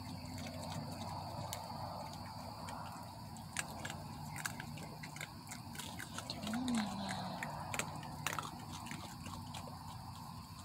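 Raccoons crunch dry pet food.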